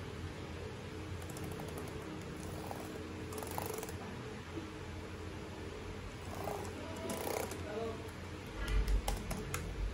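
Fingers tap softly on laptop keys.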